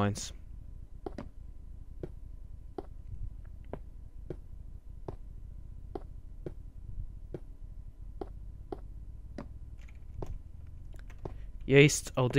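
Footsteps tap steadily and evenly on stone.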